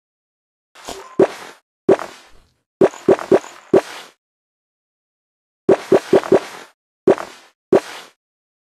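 Short, bright popping chimes sound again and again as outfits switch in a game.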